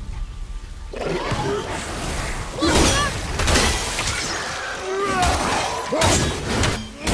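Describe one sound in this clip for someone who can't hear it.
An axe swings and strikes with heavy thuds.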